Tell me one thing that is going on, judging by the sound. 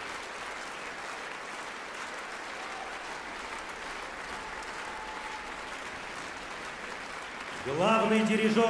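An audience applauds steadily in a large hall.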